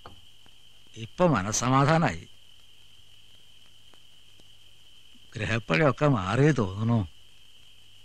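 An elderly man speaks loudly and with feeling, close by.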